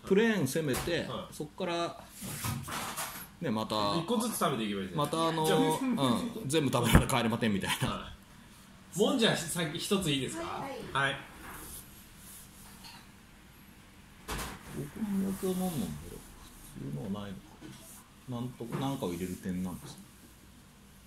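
A man talks nearby in a calm voice.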